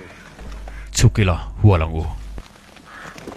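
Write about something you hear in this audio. A man speaks loudly and firmly.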